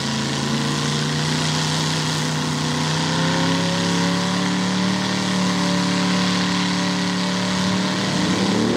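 Mud and water splash hard against a car.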